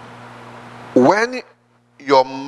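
A man preaches loudly and with fervour into a microphone.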